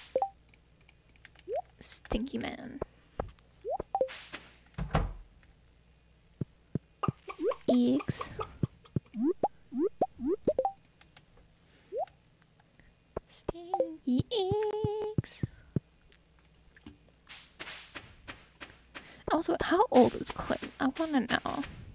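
Short game blips and chimes sound.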